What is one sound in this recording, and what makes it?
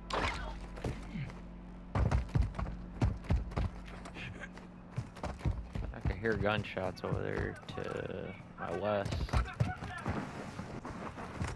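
Footsteps thud quickly on dirt and grass.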